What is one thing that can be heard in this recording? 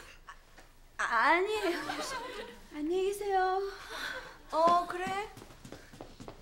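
A young woman speaks calmly and earnestly nearby.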